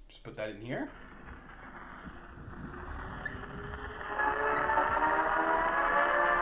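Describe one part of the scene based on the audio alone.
An old gramophone plays crackly music.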